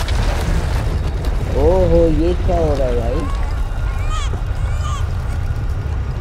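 Debris crashes and clatters as it flies apart.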